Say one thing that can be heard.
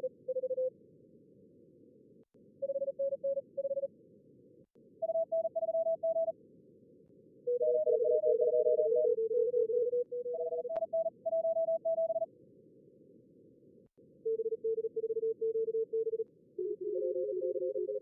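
Morse code beeps sound in quick bursts.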